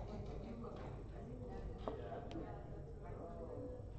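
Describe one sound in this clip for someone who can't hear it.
Game pieces click as they are moved on a board.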